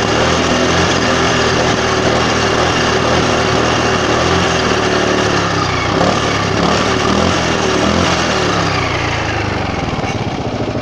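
A scooter engine revs high and loud close by.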